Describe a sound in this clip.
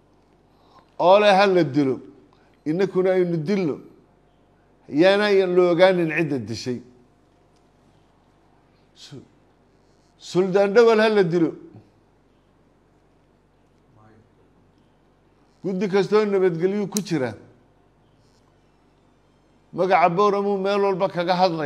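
An elderly man speaks calmly and deliberately into a close microphone, with long pauses.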